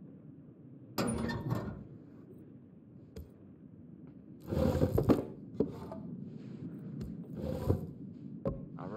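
Wooden logs knock and clatter as they are handled.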